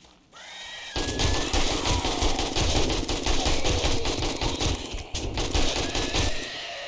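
An automatic rifle fires rapid bursts of gunfire.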